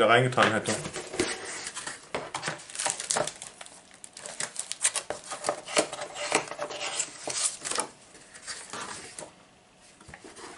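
Cardboard packaging rustles and crinkles as a box is opened.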